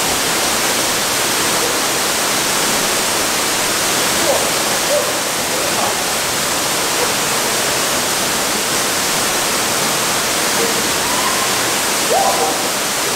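A waterfall roars steadily into a pool.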